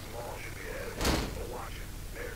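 A door bangs open with a sharp knock.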